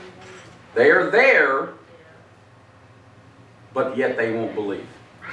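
A man preaches with emphasis through a microphone, pausing between phrases.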